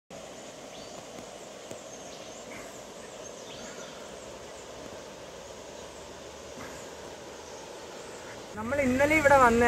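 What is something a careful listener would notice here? A shallow river trickles gently over stones.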